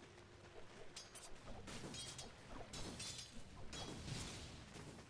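Game weapons clash and spells crackle in a fight.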